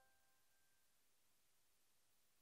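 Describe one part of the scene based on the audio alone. A keyboard piano plays a soft note that fades away.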